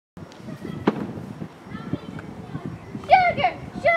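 A ball smacks softly into a boy's hands.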